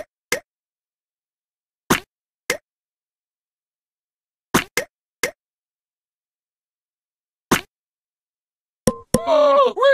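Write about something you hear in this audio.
Short soft pops sound one at a time, a few seconds apart.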